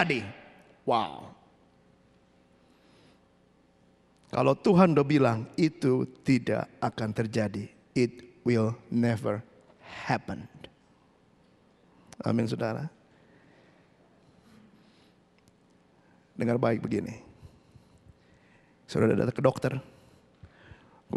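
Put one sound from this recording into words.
A man speaks with animation into a microphone, heard through loudspeakers, with pauses between phrases.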